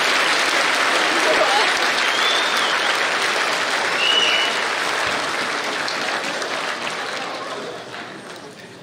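An audience applauds loudly in a large hall, then the clapping fades.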